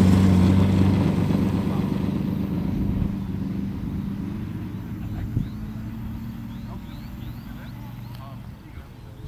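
A model plane's engine drones loudly, then fades into the distance.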